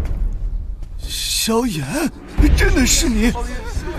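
An elderly man speaks in a low, stern voice.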